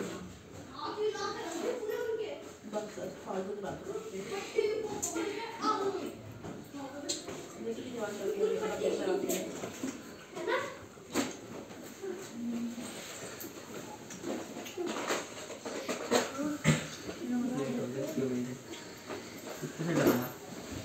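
A bag's zipper and fabric rustle.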